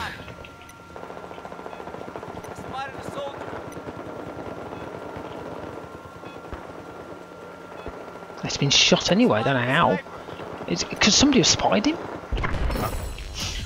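A small drone's motor hums steadily.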